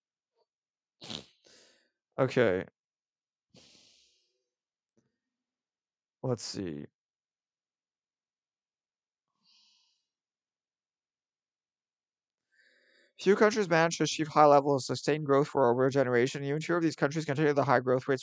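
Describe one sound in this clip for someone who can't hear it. A young man speaks into a microphone with animation, in short bursts and then at length.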